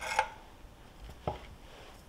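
A pastry wheel rolls across a wooden board.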